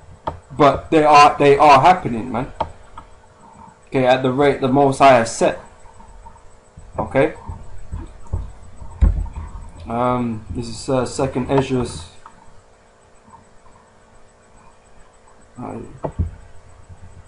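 A man speaks calmly and closely into a microphone, reading out in pauses.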